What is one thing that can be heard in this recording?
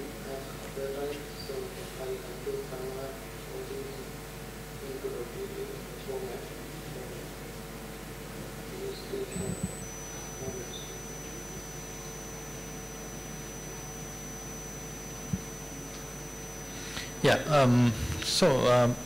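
A man speaks through a microphone over loudspeakers in a large room.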